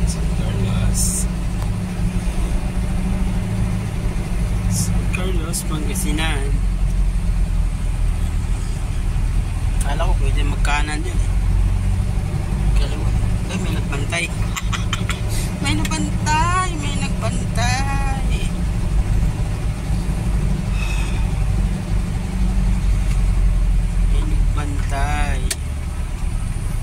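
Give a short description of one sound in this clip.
A vehicle engine rumbles steadily, heard from inside the cab.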